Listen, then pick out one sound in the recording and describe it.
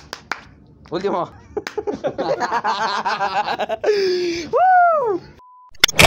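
Young men laugh loudly together close by.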